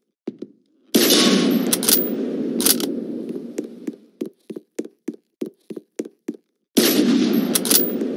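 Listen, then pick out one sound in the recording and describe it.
A gun fires in loud rapid bursts.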